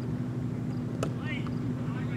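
A cricket bat strikes a leather ball outdoors.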